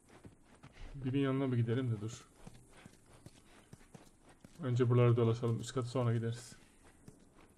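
A man talks calmly into a microphone, close by.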